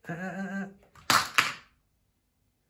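A plastic pill box falls off a table and clatters onto a hard floor.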